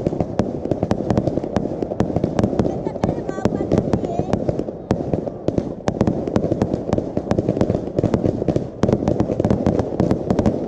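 Firework rockets whoosh upward.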